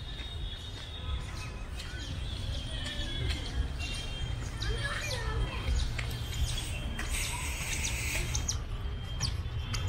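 Adult women chat faintly at a distance.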